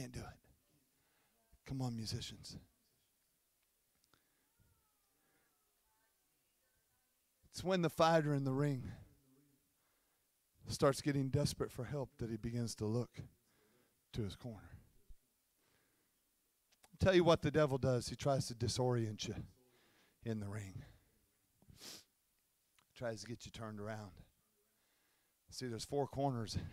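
A man speaks into a microphone in bursts, heard through loudspeakers in a large echoing hall.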